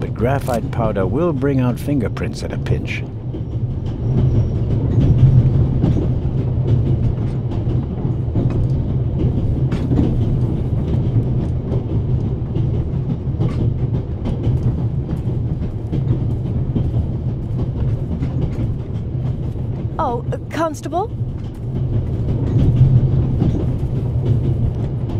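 A train rumbles steadily.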